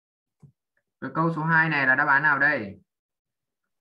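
A boy speaks briefly over an online call.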